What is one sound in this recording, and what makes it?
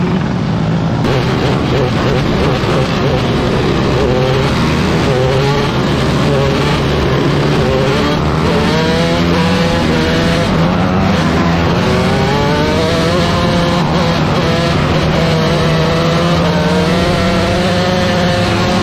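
Several other race car engines roar nearby, rising and falling in pitch.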